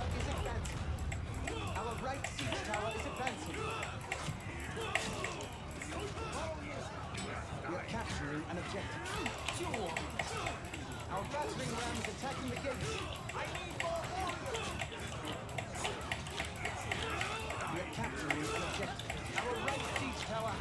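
Weapons clash and clang in a battle.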